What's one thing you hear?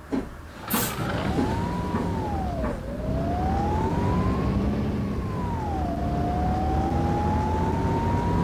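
A bus engine whines, rising and falling in pitch as the bus pulls away and speeds up.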